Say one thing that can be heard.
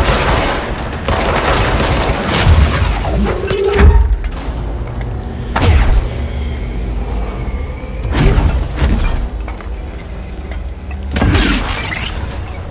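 Loud crashing blasts and debris rumble.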